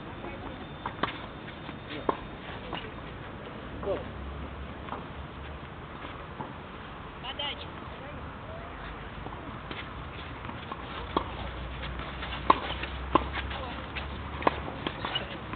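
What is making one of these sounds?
Tennis rackets strike a ball with sharp pops outdoors.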